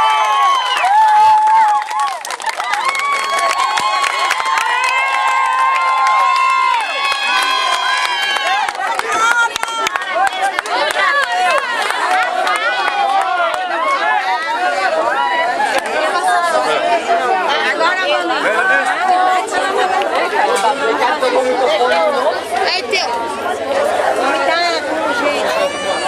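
A crowd of people chants and sings loudly together close by.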